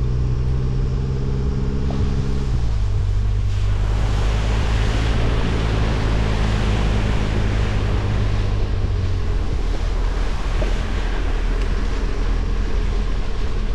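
An engine hums steadily and shifts down in pitch.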